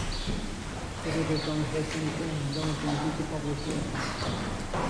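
A man chants in a low voice in a large echoing hall.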